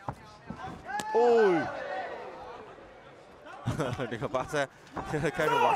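A kick lands on a body with a sharp smack.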